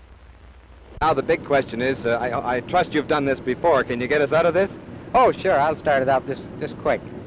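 A man talks and laughs cheerfully nearby.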